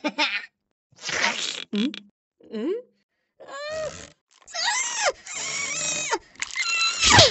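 A cartoon cat licks with wet slurping sounds.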